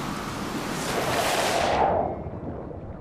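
Water splashes as a person dives in.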